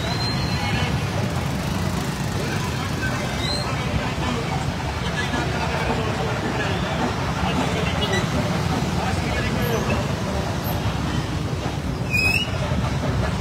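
Horns honk briefly in traffic.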